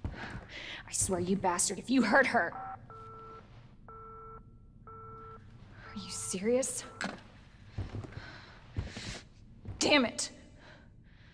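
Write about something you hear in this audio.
A young woman speaks angrily into a phone.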